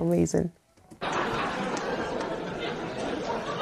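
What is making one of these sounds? A large audience laughs and applauds.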